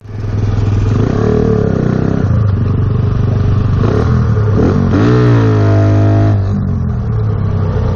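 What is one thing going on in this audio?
A motorcycle engine revs and roars up close, its pitch rising and falling.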